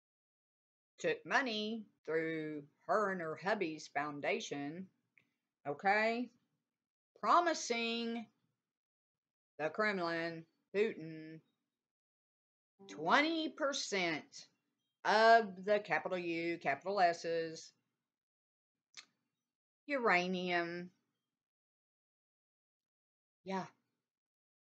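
An older woman speaks calmly over an online call, pausing now and then.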